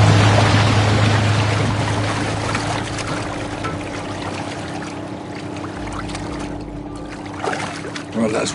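Water laps and splashes close by.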